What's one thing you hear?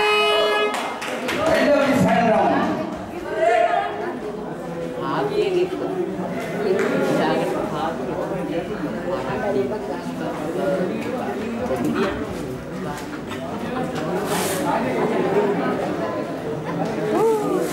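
A crowd of people chatter and call out in a large echoing hall.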